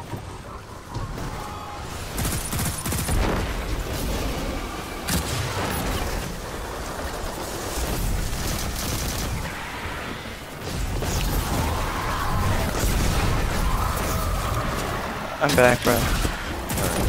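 Gunfire cracks and booms in rapid bursts.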